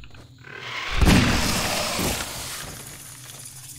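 A revolver fires a single loud shot that booms and echoes.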